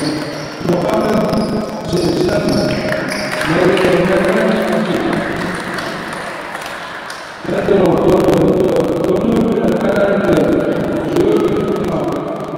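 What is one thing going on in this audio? A group of young women sings together in a large echoing hall.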